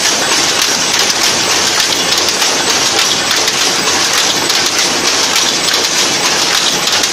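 A power loom clatters loudly and rapidly.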